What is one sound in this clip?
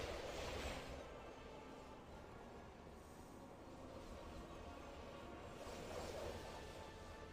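Magical bursts whoosh and crackle in swelling waves.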